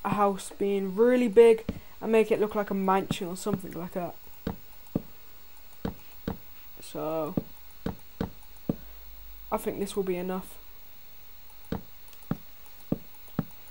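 Wooden blocks are placed with short knocks.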